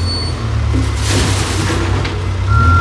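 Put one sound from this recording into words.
Debris pours with a rushing clatter from a backhoe bucket into a truck bed.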